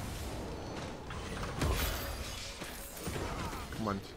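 A chest creaks open.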